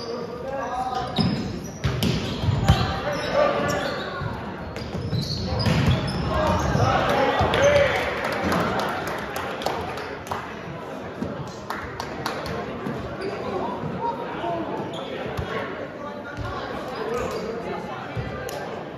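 A volleyball thumps off hands and arms.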